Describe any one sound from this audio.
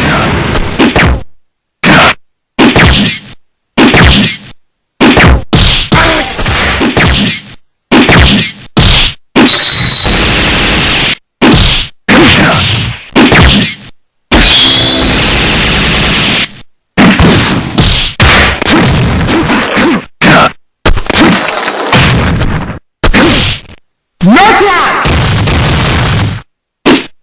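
Punches and kicks land with sharp thuds and cracks.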